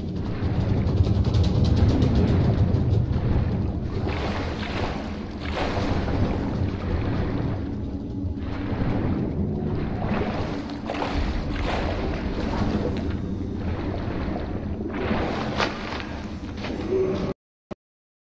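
Water sloshes and splashes as a swimmer strokes through it, heard muffled as if underwater.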